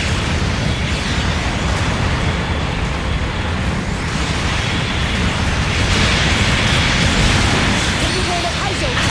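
Thrusters roar steadily.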